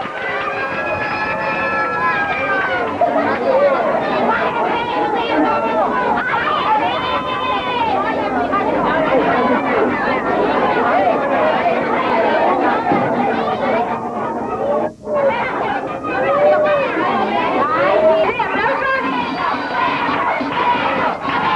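A crowd of young people talks and calls out all around, close by.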